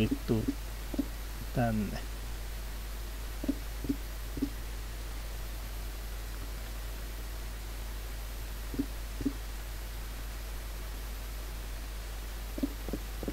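Stone blocks land with short, dull thuds.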